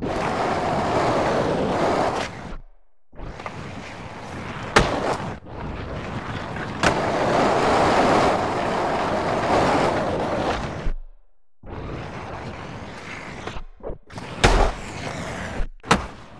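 Skateboard wheels roll loudly over concrete.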